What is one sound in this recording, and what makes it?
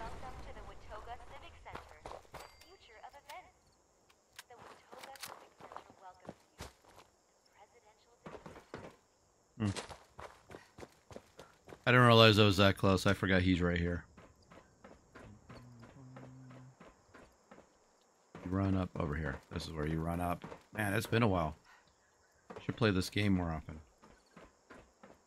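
Footsteps crunch steadily on hard ground.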